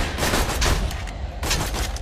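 A gun is reloaded with metallic clicks.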